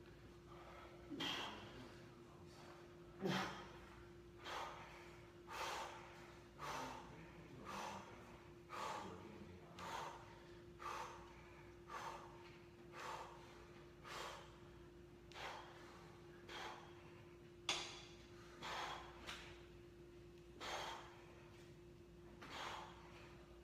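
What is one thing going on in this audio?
A man breathes out hard in short, rhythmic bursts.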